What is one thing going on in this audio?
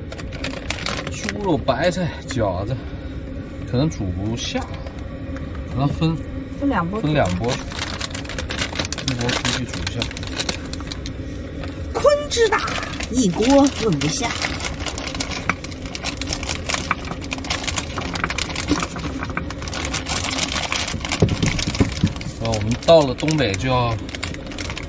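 A plastic packet crinkles and rustles.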